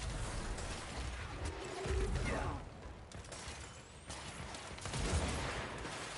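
Debris crashes and shatters.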